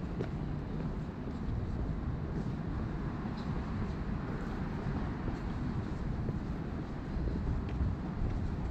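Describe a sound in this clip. Footsteps tap steadily on paving.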